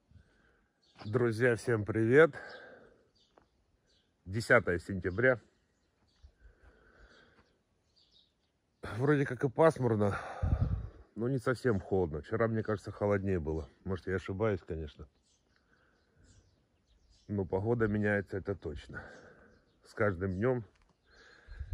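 A middle-aged man talks calmly, close to the microphone, in short bursts.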